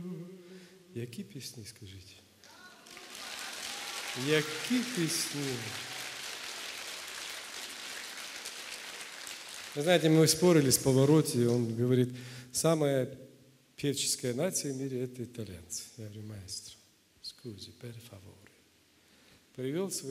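A man talks calmly into a microphone, his voice carried through loudspeakers in a large hall.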